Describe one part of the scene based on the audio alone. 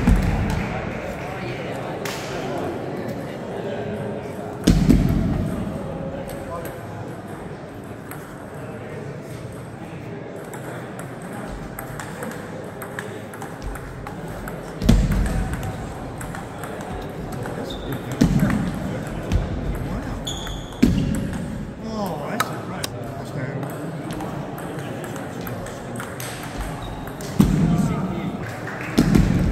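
Table tennis balls click against paddles and bounce on a table in a large echoing hall.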